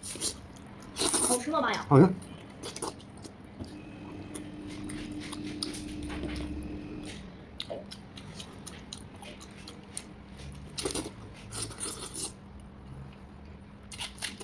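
A man sucks and slurps meat off a bone, close to a microphone.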